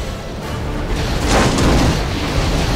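Wreckage crashes into water with a big splash.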